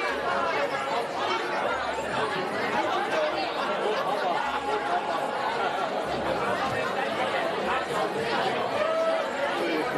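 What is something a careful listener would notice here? A crowd of adults chatters with many overlapping voices in a large hall.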